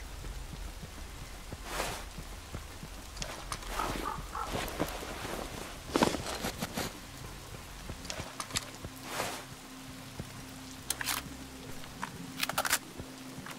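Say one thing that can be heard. Footsteps crunch on a gravel road.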